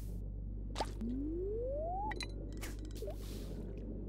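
A fishing rod casts its line with a rising whoosh and a splash.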